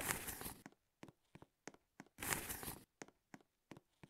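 Quick game footsteps tap on the ground.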